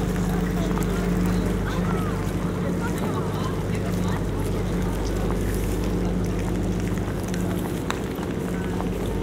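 Footsteps patter on pavement.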